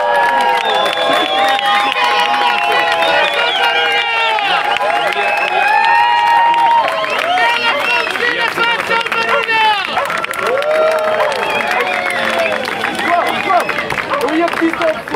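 A large crowd of men and women chants and shouts loudly outdoors.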